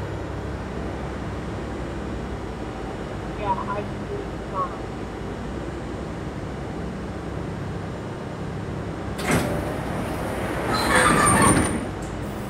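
A subway train's motors hum steadily.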